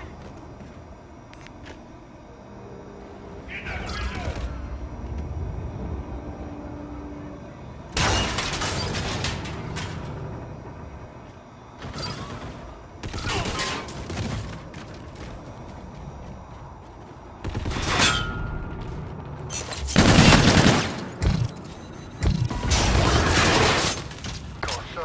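Rapid gunfire rattles in short, loud bursts.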